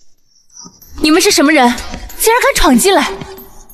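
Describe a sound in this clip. A young woman asks sharply close by.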